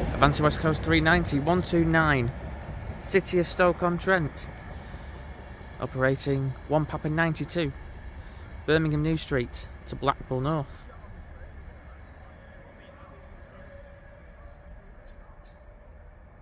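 An electric high-speed passenger train pulls away into the distance.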